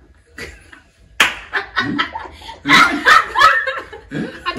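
Several young men and women laugh together.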